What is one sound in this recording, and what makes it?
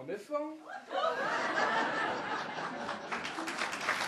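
An audience cheers loudly.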